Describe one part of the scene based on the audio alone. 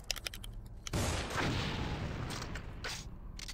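A grenade launcher fires with a loud blast.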